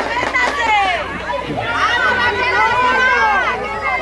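A football thuds as a child kicks it.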